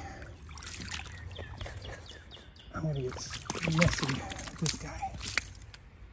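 A fish flops and splashes in shallow water.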